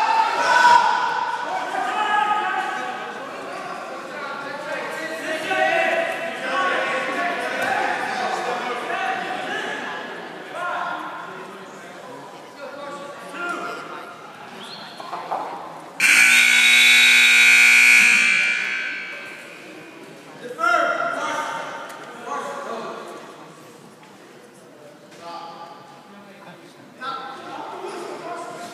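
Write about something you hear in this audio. Spectators in a large echoing gym call out and cheer.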